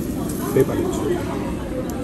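A thin slice of meat sizzles on a charcoal grill.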